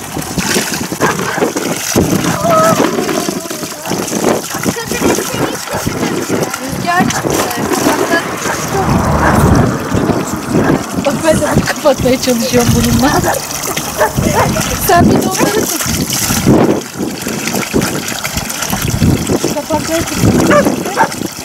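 Water pours steadily from a pipe and splashes into a pool.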